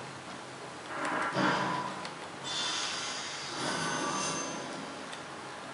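Loud impact sounds burst out through a television speaker.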